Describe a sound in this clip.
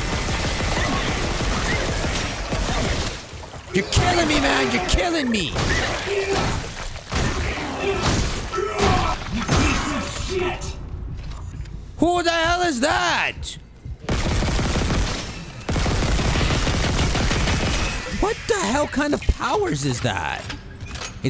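A plasma gun fires in sharp bursts.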